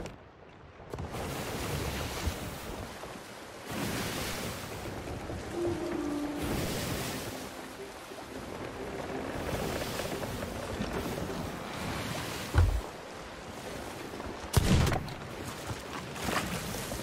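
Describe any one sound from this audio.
Ocean waves rush and churn steadily.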